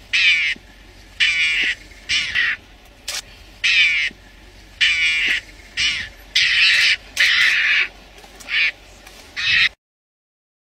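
A small animal squeals and chatters shrilly in short bursts.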